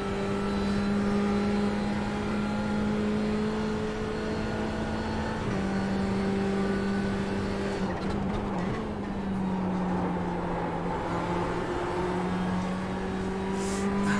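A racing car engine drones at high revs, dropping briefly as the car slows for a corner.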